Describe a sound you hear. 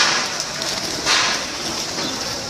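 A pigeon flaps its wings in a burst of flight.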